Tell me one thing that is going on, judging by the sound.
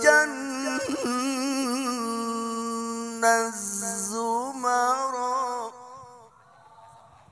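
A man sings a long, wavering melody through a microphone, close and loud.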